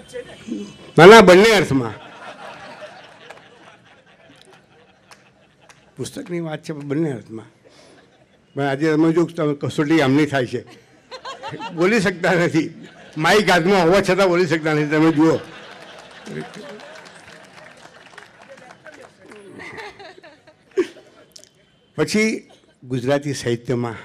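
An elderly man speaks slowly and expressively into a microphone.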